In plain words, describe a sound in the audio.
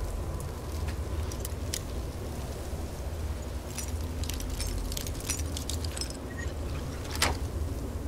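Small metal clicks and scrapes of a lockpick working in a lock.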